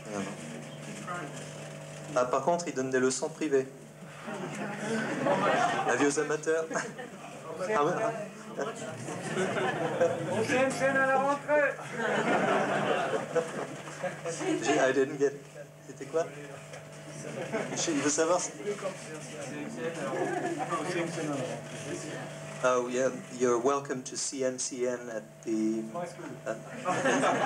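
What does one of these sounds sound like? An electric bass guitar plays a funky, plucked line through an amplifier.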